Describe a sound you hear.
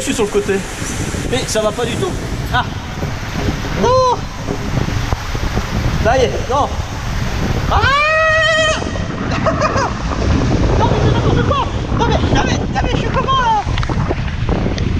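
Water rushes and splashes down a slide.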